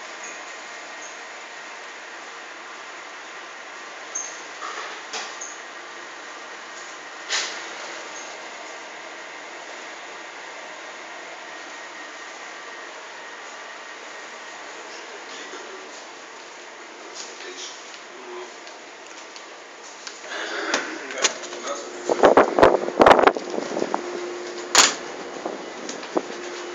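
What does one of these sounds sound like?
A steady low hum of a ship's engine runs throughout.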